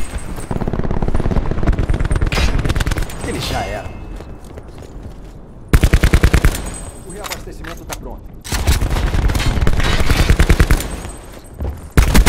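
An automatic rifle fires in rapid bursts in a video game.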